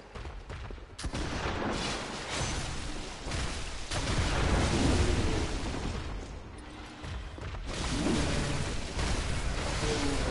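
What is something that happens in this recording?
Heavy blows and slashes crash during a fight.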